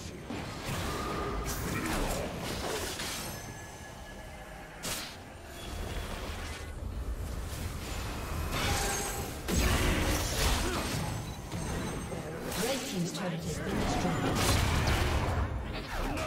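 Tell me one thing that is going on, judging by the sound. Fantasy game spell effects whoosh and crackle in bursts during a fight.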